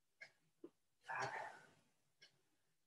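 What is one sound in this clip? A woman breathes out hard while exercising.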